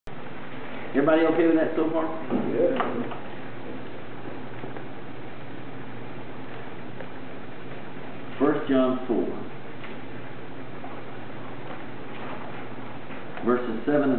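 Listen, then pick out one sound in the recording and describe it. A middle-aged man speaks briefly in short bursts nearby.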